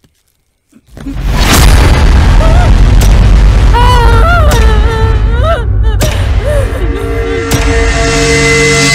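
A woman screams loudly.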